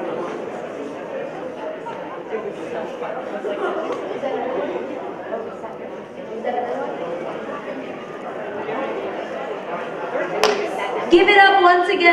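An audience murmurs in a large echoing hall.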